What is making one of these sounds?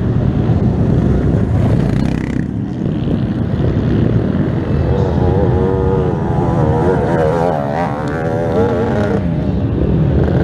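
An off-road quad engine roars and revs up and down close by.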